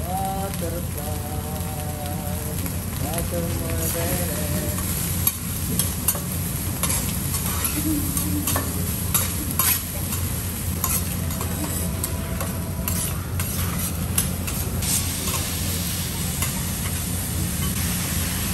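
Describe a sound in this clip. A metal spatula scrapes and clanks against a griddle.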